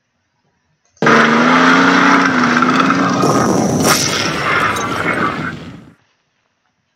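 A tank cannon fires and an explosion rumbles.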